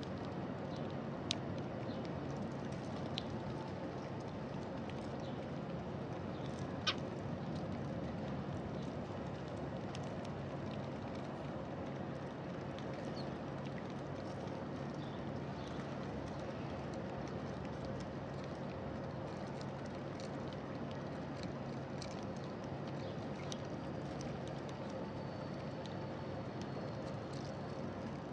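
Birds peck at seeds on the ground with small tapping clicks.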